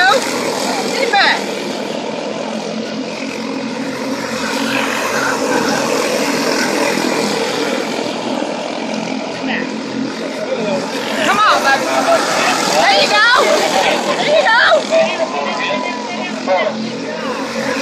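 Small kart engines buzz and whine as they race past.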